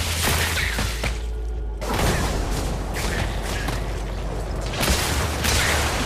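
Video game spells blast and crackle with impact hits.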